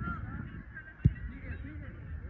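A soccer ball is kicked with a thud.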